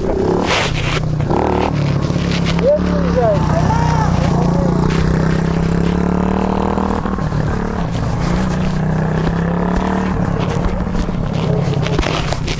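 Another dirt bike drones as it rides past nearby.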